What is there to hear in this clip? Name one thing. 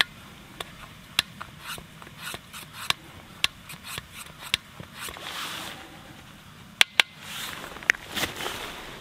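A metal spoon clinks against the inside of a metal pot while stirring.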